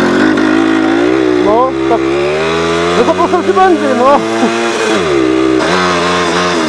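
A small moped engine revs up and down.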